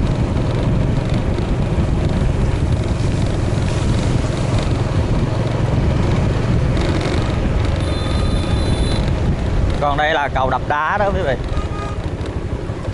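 A motorbike engine hums steadily while riding along a road.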